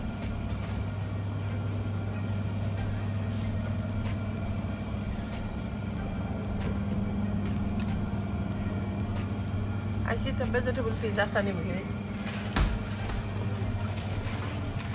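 Refrigerated freezers hum steadily.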